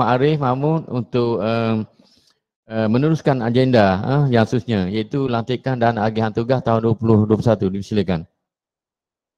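A man speaks calmly through an online call.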